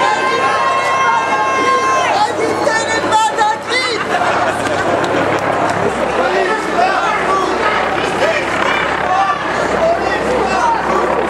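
A crowd of marching protesters chatters and calls out outdoors.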